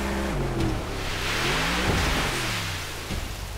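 Water splashes and sprays loudly as the boat hits a wave.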